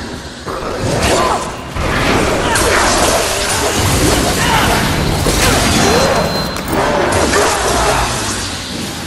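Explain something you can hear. Blades slash and clash in quick combat.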